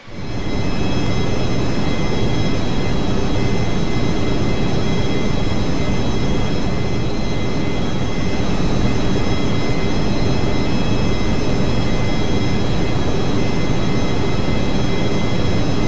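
Aircraft engines drone steadily with a whining hum.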